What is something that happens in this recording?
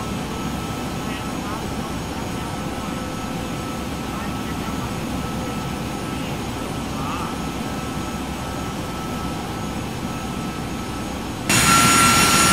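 A steady low hum of aircraft engines fills a cockpit.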